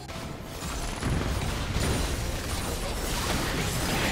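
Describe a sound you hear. Game spells and blasts crash and crackle in a busy fight.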